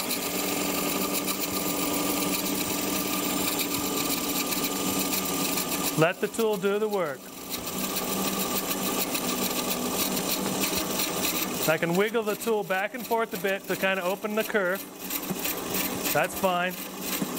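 A gouge cuts into spinning wood on a lathe with a steady rough scraping.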